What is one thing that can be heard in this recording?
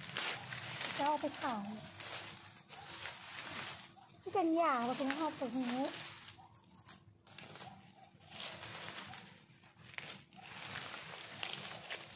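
Leafy plants rustle as they are pulled from the ground.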